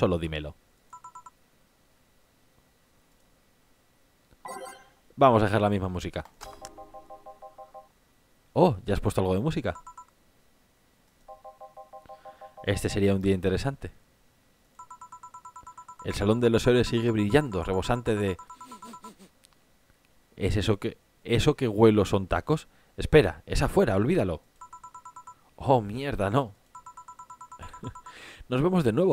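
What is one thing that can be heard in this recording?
Quick electronic blips chatter in short bursts.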